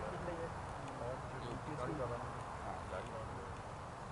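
Men call out faintly in the distance outdoors.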